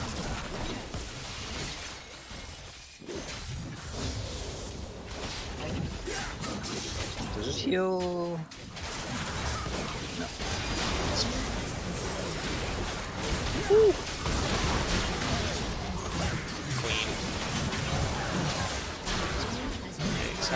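Game battle effects clash and crackle in quick bursts.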